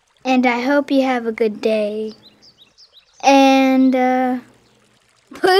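A high, cartoonish voice sings a drawn-out tune close by.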